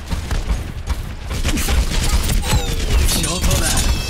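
Gunfire and blasts crackle loudly nearby.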